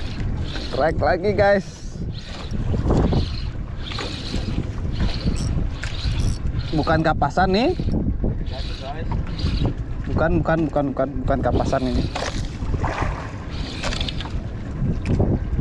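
A fishing reel whirs as its handle is cranked.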